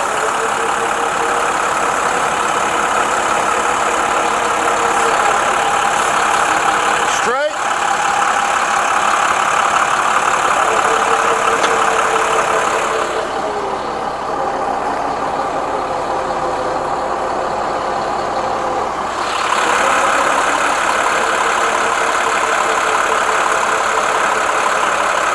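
A diesel truck engine idles steadily nearby.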